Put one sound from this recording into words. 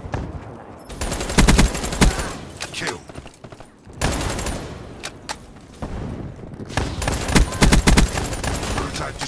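Gunfire rattles in short rapid bursts.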